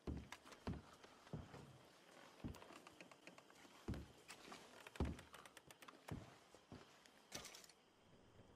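Boots thud on wooden floorboards.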